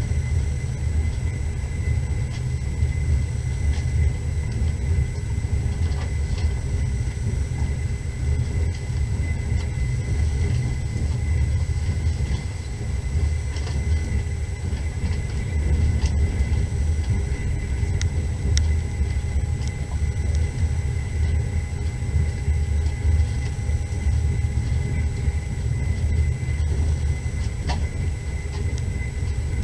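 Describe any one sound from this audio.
A car engine drones steadily as the car drives along.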